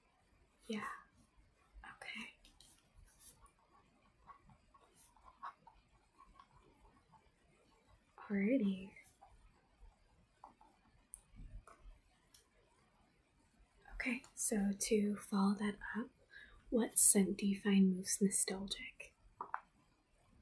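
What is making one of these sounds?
A young woman speaks quietly and close by, with pauses.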